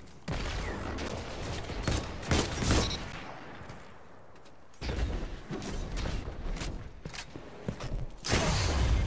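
Gunshots fire in sharp bursts.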